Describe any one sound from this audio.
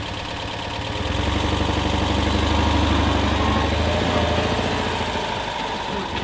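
A small car engine revs louder as the car pulls away, then settles.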